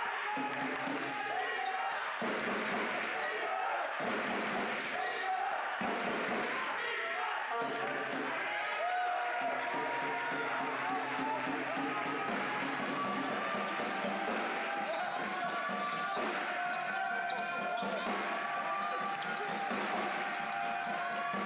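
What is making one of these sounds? A basketball thuds as it is dribbled on the court.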